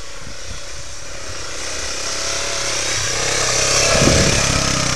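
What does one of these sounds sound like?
An all-terrain vehicle engine grows louder as it approaches again.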